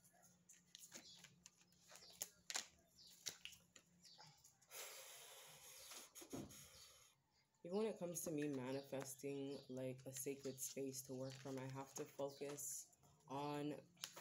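Playing cards tap and slide on a wooden table.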